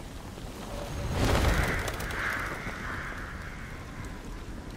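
A flock of birds bursts into flight with a rush of flapping wings.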